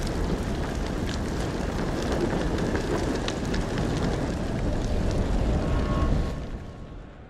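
Fire roars and crackles up close.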